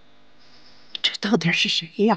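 An elderly woman speaks softly, close by.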